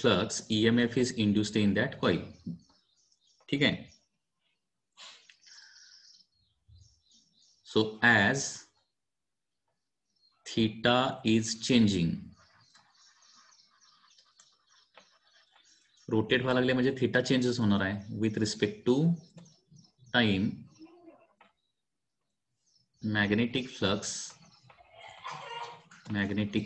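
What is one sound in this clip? A man explains calmly into a close microphone, with pauses.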